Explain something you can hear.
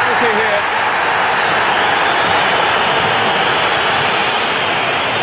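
A large stadium crowd roars steadily.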